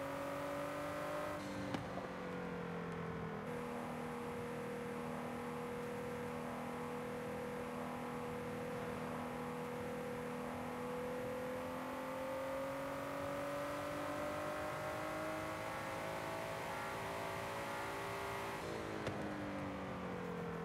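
A sports car engine hums steadily, rising and falling slightly in pitch.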